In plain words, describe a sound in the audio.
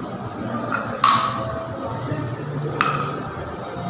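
Glasses clink sharply against each other.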